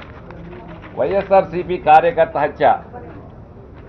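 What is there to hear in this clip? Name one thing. A middle-aged man speaks into a microphone, reading out.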